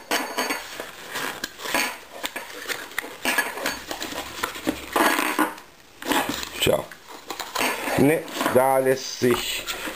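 Paper packaging rustles and crinkles as it is handled.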